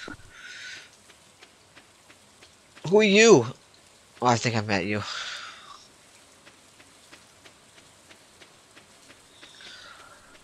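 Footsteps tap steadily on a dirt path.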